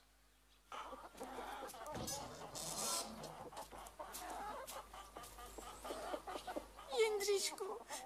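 Hens cluck nearby.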